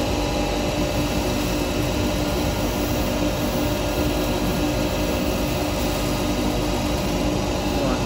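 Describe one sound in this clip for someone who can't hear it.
A cutting tool scrapes and shaves spinning wood.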